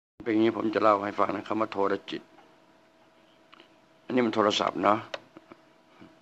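An elderly man speaks calmly into a close microphone, in short bursts.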